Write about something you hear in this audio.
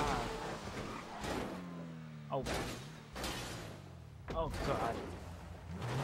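A car crashes and scrapes against a wall.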